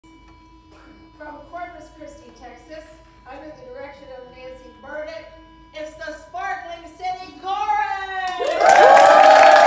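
A women's choir sings in harmony.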